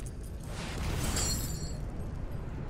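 A bright shimmering chime rings out from a card game.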